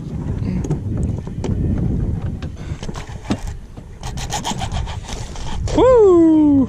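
A fishing reel clicks as its line is wound.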